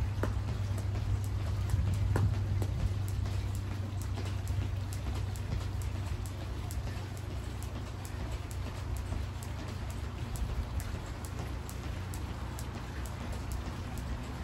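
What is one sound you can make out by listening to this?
A jump rope slaps the ground in a quick, steady rhythm.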